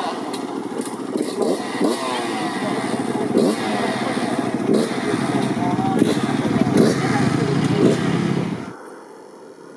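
Several dirt bike engines idle and rev nearby.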